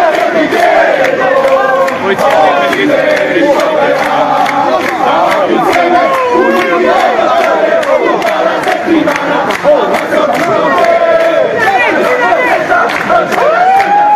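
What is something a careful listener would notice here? A man shouts through a megaphone.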